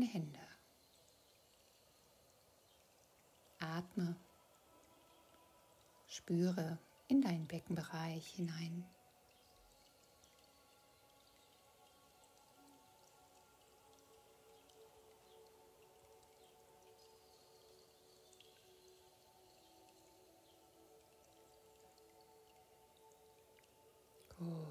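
A woman speaks calmly and softly close by.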